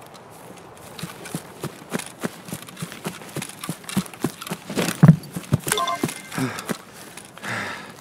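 Footsteps crunch on gravel and debris.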